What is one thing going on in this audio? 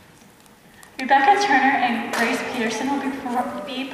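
A young woman speaks into a microphone, heard through loudspeakers in an echoing hall.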